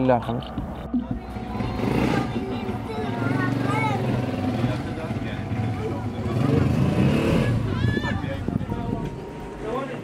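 Several men talk together outdoors.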